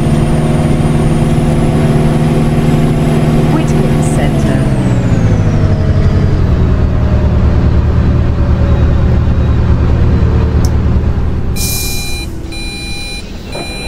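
A bus engine drones steadily and then lowers in pitch as the bus slows down.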